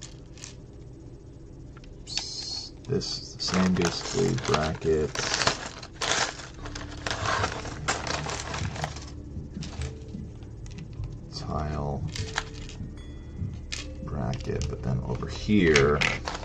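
Plastic toy bricks rattle and clatter as hands sort through them.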